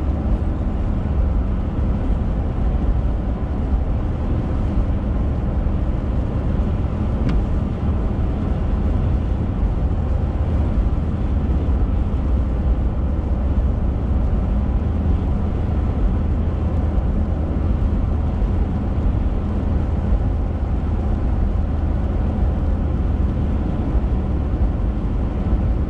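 Tyres rumble steadily on a wet road.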